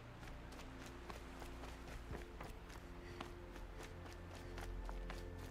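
Footsteps crunch quickly over snowy ground.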